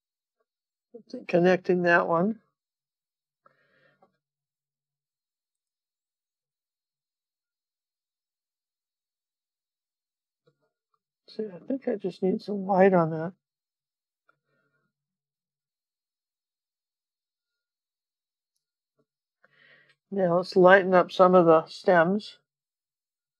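A woman talks calmly into a microphone in short bursts.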